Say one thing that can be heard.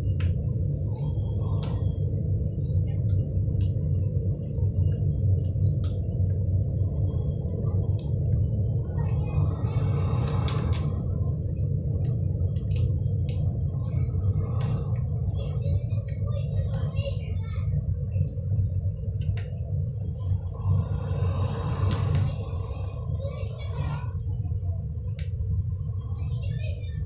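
Jet boot thrusters roar steadily in a video game.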